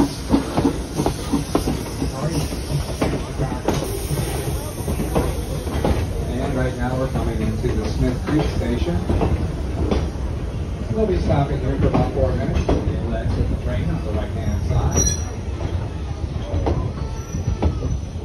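Train wheels rumble and clack along the rails.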